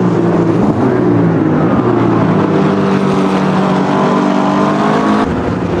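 Racing car engines roar loudly at high revs.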